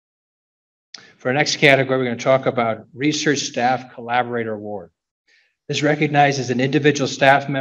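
A man speaks calmly through a microphone over loudspeakers in a large hall.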